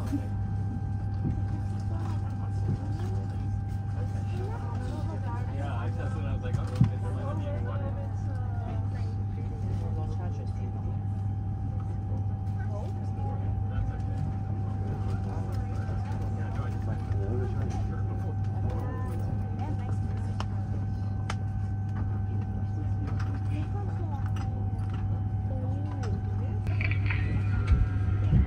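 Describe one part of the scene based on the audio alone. An aircraft's engines hum steadily.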